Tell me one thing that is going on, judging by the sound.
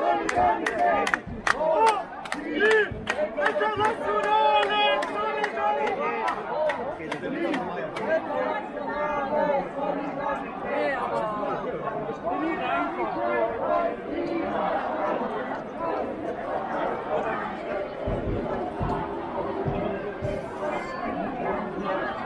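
Many men and women talk and shout at once nearby.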